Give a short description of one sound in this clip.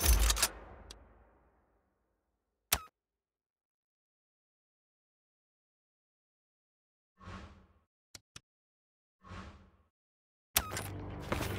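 Short menu clicks sound as options change.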